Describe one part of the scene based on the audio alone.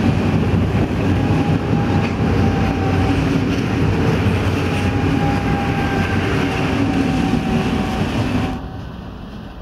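A train rolls past on the rails.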